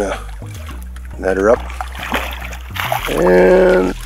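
A fish splashes and thrashes in the water.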